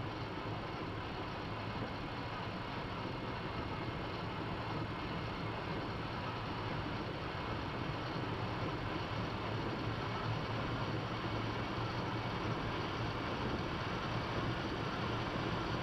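A train rumbles steadily along the tracks, growing slightly louder as it gains speed.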